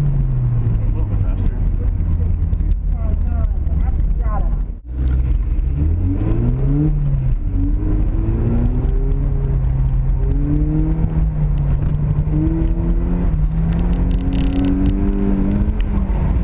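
A car engine roars and revs up and down close by.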